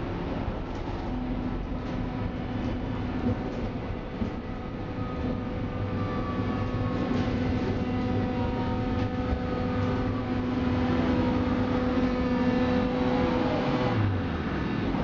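Train wheels whine with a steady high tone.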